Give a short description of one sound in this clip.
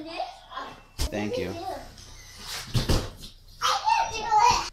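A young girl thumps onto an inflatable mat.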